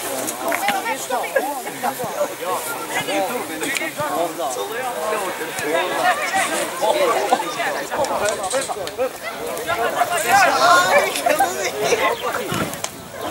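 Many young boys chatter and shout close by outdoors.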